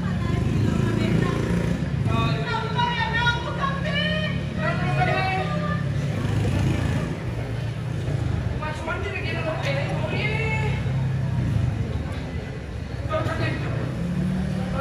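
A low, steady instrumental accompaniment plays through a loudspeaker.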